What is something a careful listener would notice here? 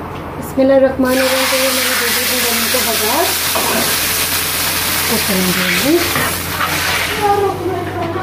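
Hot oil sizzles loudly as batter is poured in.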